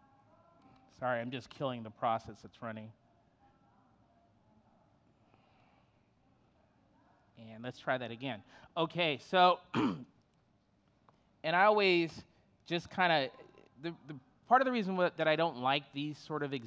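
A man speaks through a microphone, pausing between phrases.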